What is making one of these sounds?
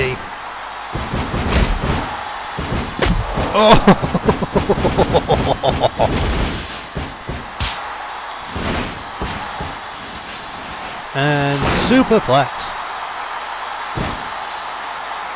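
Wrestlers' blows land with thuds.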